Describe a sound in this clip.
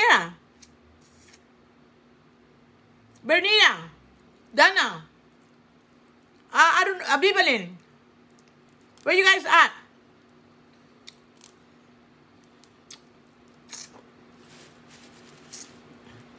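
A middle-aged woman chews and slurps food close by.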